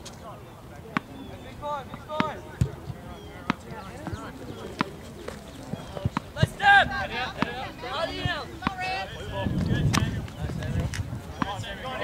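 A soccer ball is kicked with sharp thuds.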